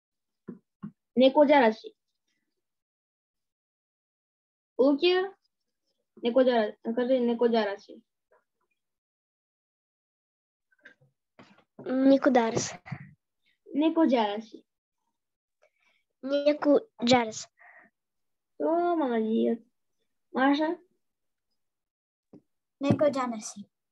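A young girl speaks in short phrases, heard through an online call.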